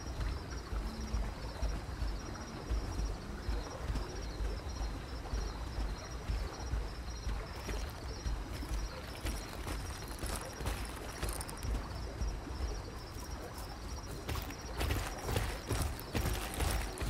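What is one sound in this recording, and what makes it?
Heavy footsteps thud steadily on the ground as a large creature walks.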